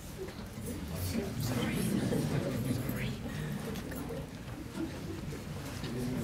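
A group of adults recites together in low murmuring voices.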